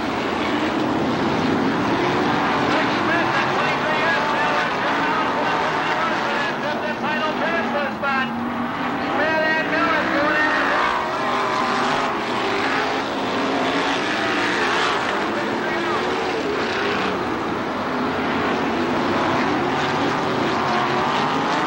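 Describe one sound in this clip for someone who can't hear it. Several racing car engines roar loudly and rise and fall in pitch as the cars race past.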